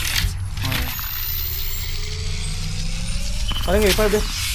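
A device charges with a rising electric hum.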